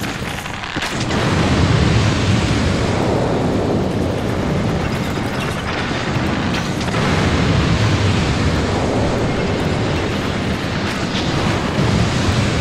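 Fire roars in loud bursts of explosion.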